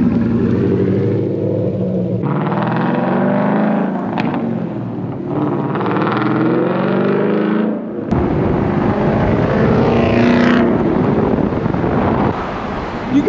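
A sports car engine rumbles loudly and revs up and down.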